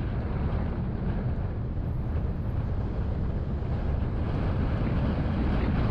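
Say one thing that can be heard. Car engines and tyres rumble steadily on a busy road.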